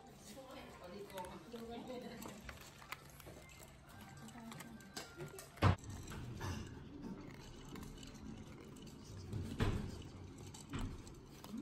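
Kibble rattles against ceramic bowls.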